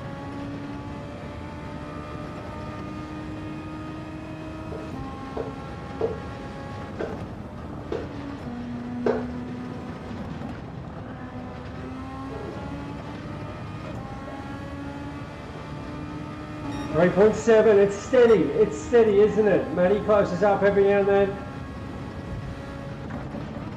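A racing car engine whines at high revs, rising and dropping as the car shifts gears.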